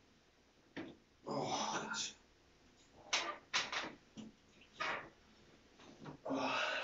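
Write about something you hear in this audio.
A man grunts and breathes out hard as he does sit-ups nearby.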